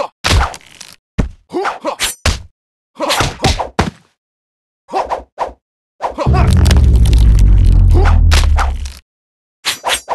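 Heavy blows land with deep thuds.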